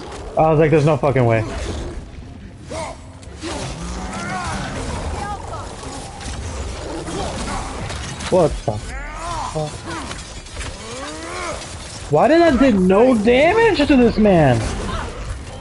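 A large beast growls and roars loudly.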